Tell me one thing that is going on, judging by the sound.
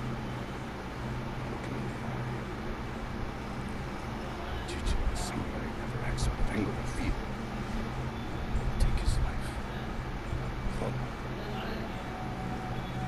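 A man speaks calmly and firmly nearby.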